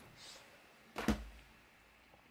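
A plastic case knocks softly onto a hard surface.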